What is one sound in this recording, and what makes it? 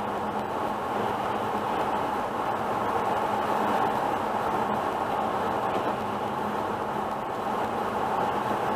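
A car drives steadily along a highway with a constant roar of tyres and engine inside the cabin.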